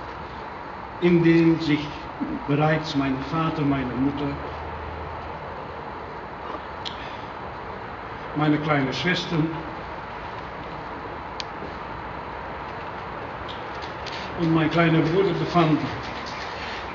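An elderly man speaks slowly and formally over loudspeakers outdoors, with long pauses.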